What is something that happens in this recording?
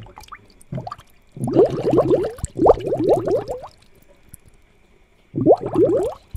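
Air bubbles gurgle softly in water.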